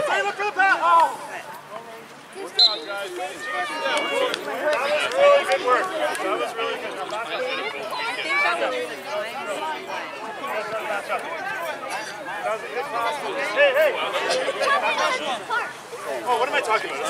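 Young children shout and chatter outdoors.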